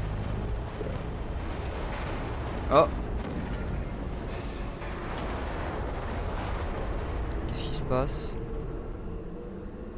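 A deep, steady rumble roars.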